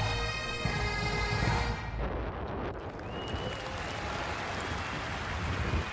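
Wind gusts across open hills and buffets the microphone.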